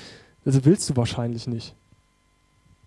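A young man speaks through a microphone in a calm, lively voice.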